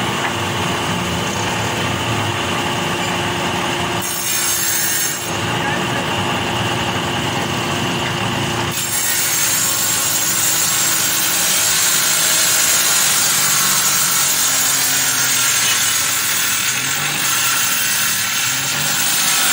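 A strip of wood scrapes and rattles against the planer bed.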